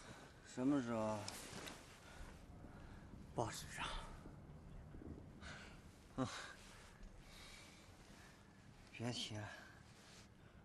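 A young man speaks in a tired, drawn-out voice.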